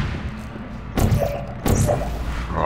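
A sci-fi gun fires with a sharp electronic zap.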